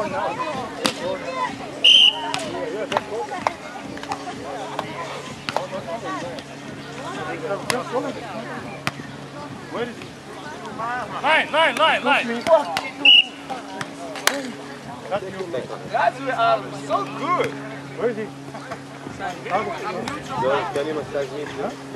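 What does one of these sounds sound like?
Adult men and women chatter and call out nearby, outdoors.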